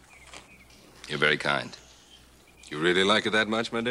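An older man speaks in a deep voice.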